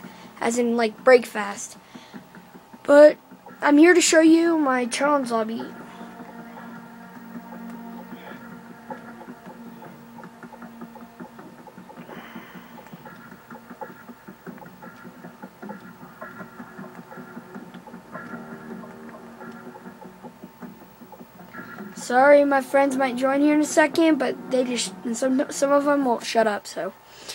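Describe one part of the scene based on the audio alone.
Soft game music plays from a television speaker.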